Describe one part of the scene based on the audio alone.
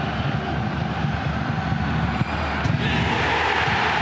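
A football is kicked hard with a dull thud.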